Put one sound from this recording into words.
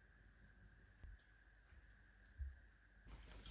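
Footsteps thud softly on a floor.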